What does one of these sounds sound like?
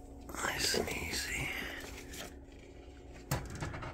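A plastic tub scrapes as it slides out of a shelf.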